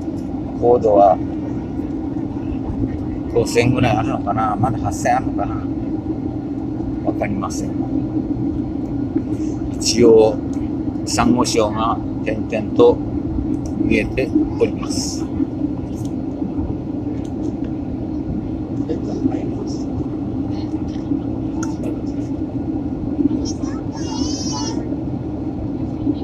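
An aircraft engine drones steadily.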